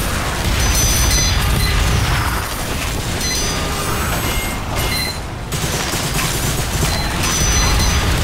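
Game tones chime in short high beeps.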